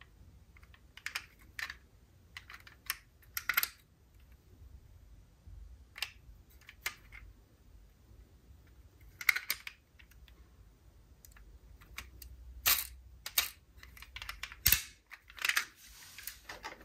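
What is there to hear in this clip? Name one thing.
Small plastic toy car doors click open and shut.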